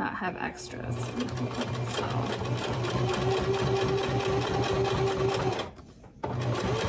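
A sewing machine runs steadily, stitching.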